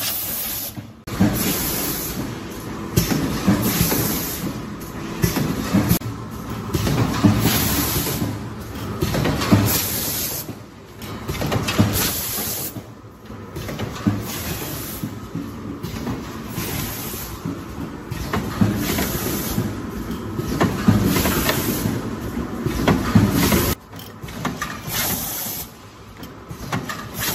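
A packaging machine whirs and clatters steadily.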